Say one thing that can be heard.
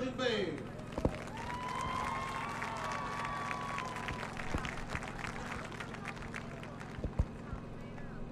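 A marching band plays brass and drums outdoors.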